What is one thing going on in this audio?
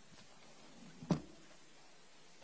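A folder knocks against a lectern with a dull thump.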